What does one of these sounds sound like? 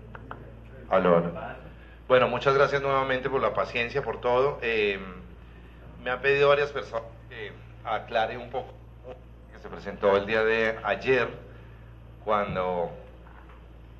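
A man speaks calmly into a microphone, heard through loudspeakers in a large room.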